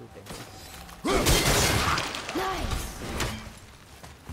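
An axe swings with a heavy whoosh and crash.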